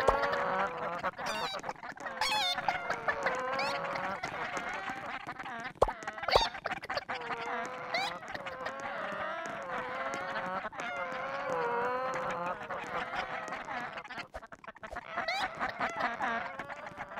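A cheerful melody plays throughout.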